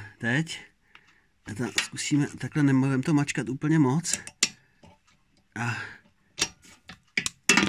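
Metal pliers click as they grip and squeeze a clip.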